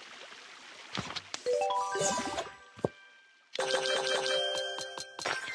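A bright game chime plays with a rising tune.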